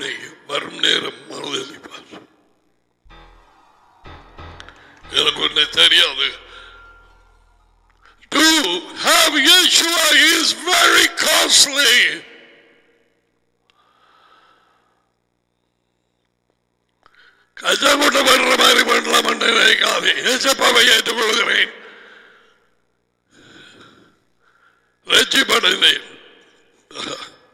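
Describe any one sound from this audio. A middle-aged man speaks with animation through a headset microphone.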